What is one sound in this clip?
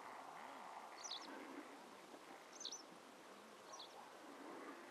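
Small birds give short, high chirps outdoors.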